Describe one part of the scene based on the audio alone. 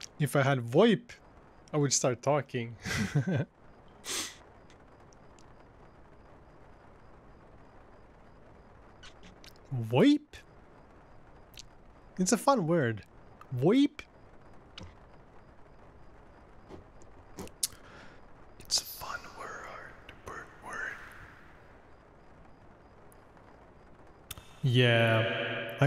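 A young man talks into a close microphone in short bursts, with pauses.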